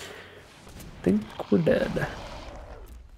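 A magical whooshing effect sounds as a spell flies.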